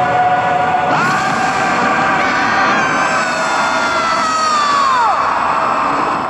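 A lion roars loudly.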